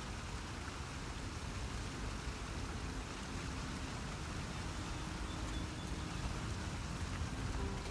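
A river rushes nearby.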